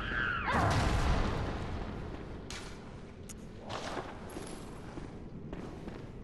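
Footsteps tread on a stone floor.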